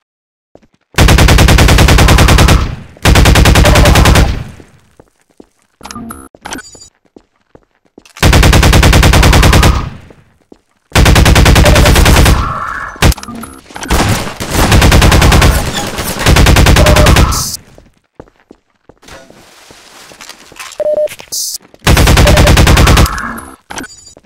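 A rifle fires in long, rapid bursts.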